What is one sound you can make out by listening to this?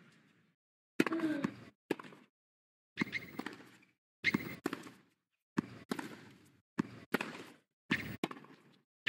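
Tennis balls are struck with sharp pops, back and forth in a steady rally.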